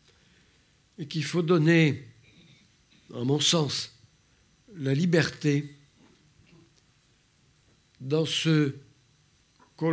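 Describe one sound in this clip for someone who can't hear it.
A man speaks into a microphone in short, halting phrases with pauses.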